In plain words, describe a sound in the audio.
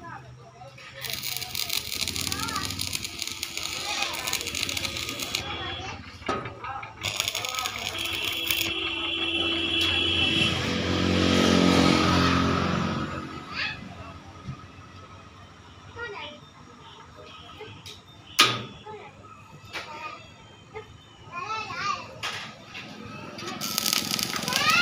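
An electric welding arc crackles and sizzles in bursts.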